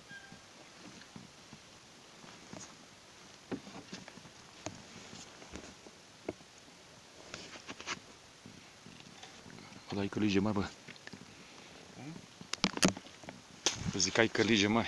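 Clothing rustles and brushes close by.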